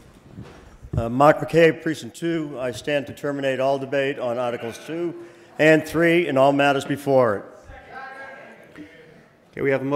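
A man speaks clearly through a microphone in a large echoing hall.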